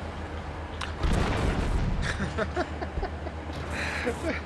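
A loud explosion bursts and crackles.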